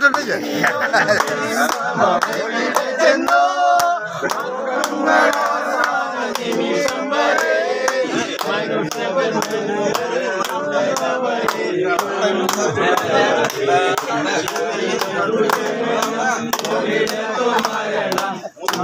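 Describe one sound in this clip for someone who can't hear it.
Men clap their hands in a quick, steady rhythm.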